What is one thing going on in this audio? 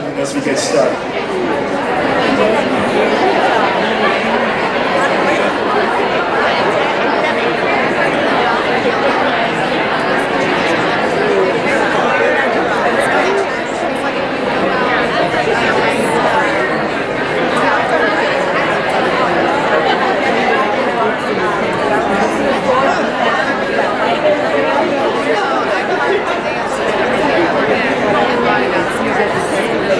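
Many people chatter in a crowd.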